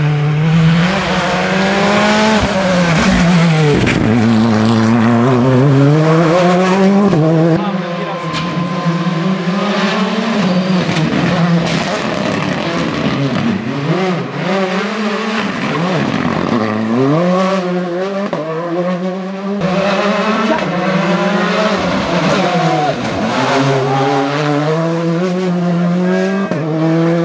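A rally car engine roars loudly, revving up and down through the gears as it speeds past.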